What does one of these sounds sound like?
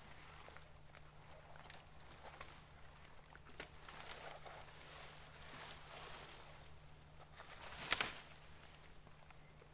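Branches rustle and crack as they are moved by hand.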